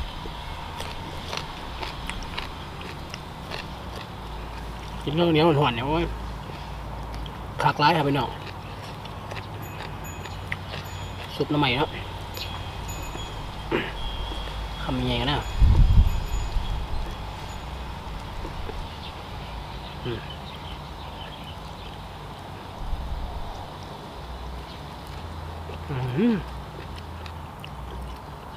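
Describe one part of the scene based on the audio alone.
A young man chews food noisily.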